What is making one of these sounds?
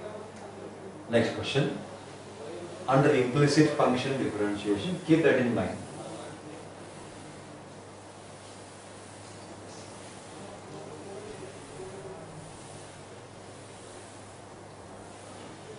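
A duster rubs softly across a chalkboard.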